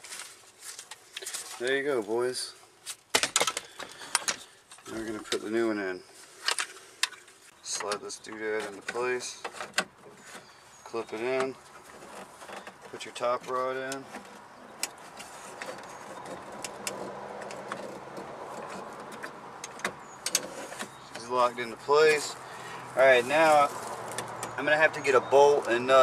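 Plastic parts click and knock against a car door.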